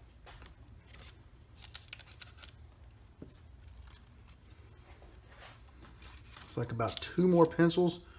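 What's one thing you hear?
Wooden pencils rattle and clack together as a hand takes them from a box.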